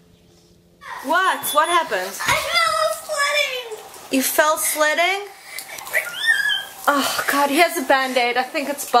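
A woman shrieks and cries out in pain.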